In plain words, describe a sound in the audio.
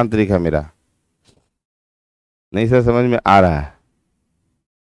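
A man speaks loudly and with animation into a close microphone.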